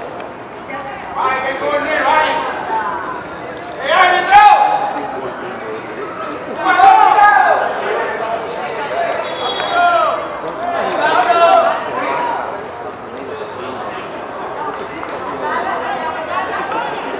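Young players shout to each other far off across an open field.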